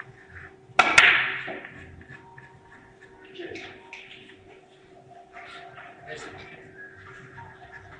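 Billiard balls click against each other and thud off the cushions.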